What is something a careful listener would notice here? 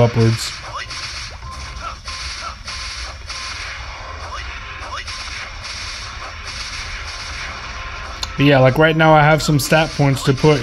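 Video game sound effects and music play from a small speaker.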